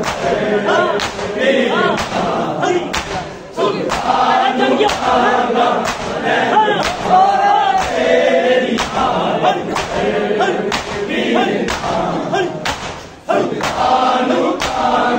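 A large crowd of men chants loudly in unison.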